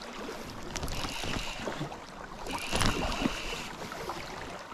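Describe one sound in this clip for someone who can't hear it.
A fishing reel whirs and clicks.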